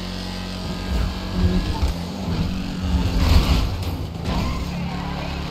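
A car scrapes and bumps against another vehicle.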